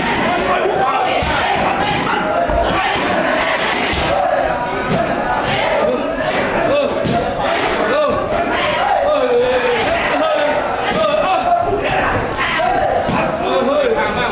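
Kicks and punches smack against padded mitts.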